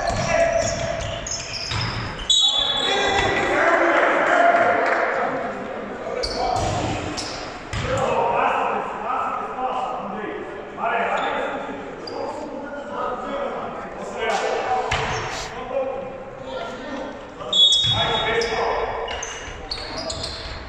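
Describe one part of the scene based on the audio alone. A basketball bounces on a wooden floor in a large echoing hall.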